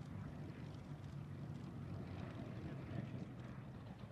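A propeller plane's piston engine drones loudly as it speeds along a runway.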